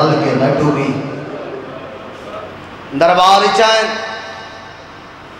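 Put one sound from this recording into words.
A man speaks forcefully into a microphone, heard through loudspeakers with echo.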